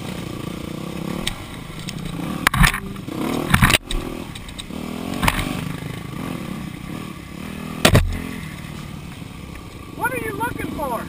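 A dirt bike engine revs and sputters close by.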